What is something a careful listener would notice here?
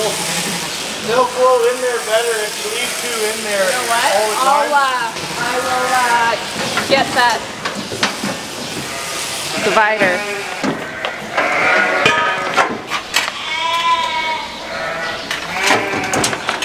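Sheep bleat loudly and repeatedly nearby.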